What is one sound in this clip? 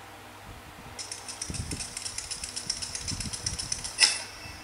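Quick game sound effects patter rapidly from a tablet speaker.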